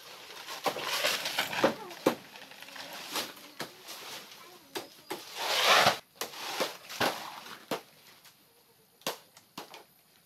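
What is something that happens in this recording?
Dry leaves crackle and rustle underfoot.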